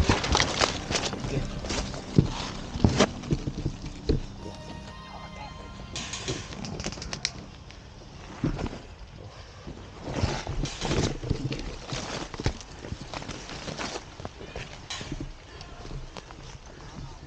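Leaves and branches rustle against moving bodies.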